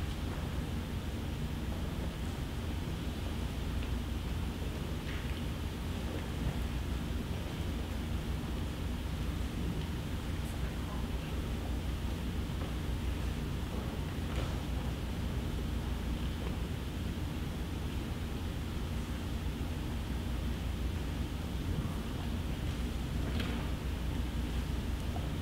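A crowd shuffles and rustles faintly now and then in a large hall.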